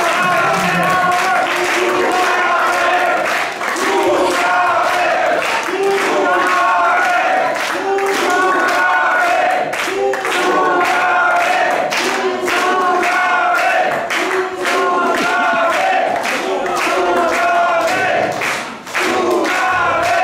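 A live band plays loud music.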